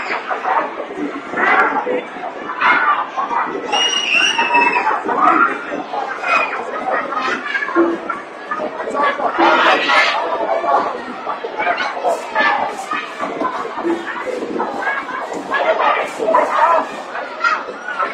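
A young child talks close by.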